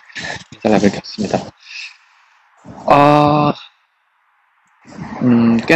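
A young man talks close by, in a muffled voice, with animation.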